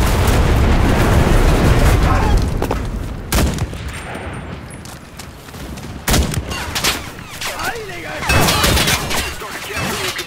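A tank burns with a roaring fire.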